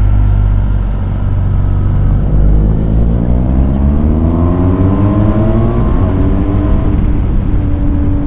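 A motorcycle engine hums close by and rises in pitch as it speeds up.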